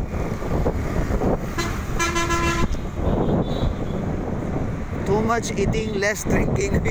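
A vehicle engine rumbles steadily as it drives along a street.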